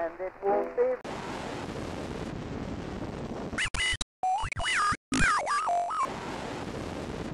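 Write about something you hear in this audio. Loud television static hisses.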